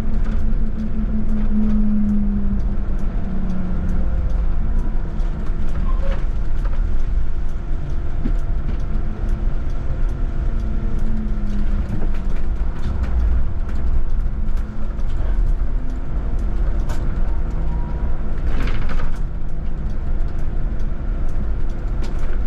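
Tyres roll with a low rumble on the road.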